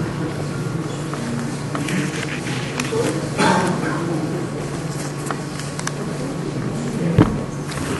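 An elderly man speaks calmly in an echoing room.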